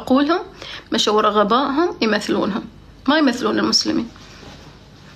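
A young woman speaks with animation close to a phone microphone.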